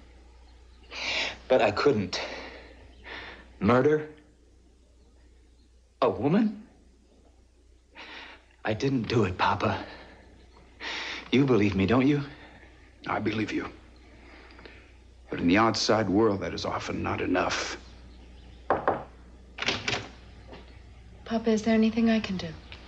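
A middle-aged man speaks in a low, stern voice, close by.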